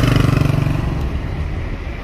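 A motorcycle engine putters nearby.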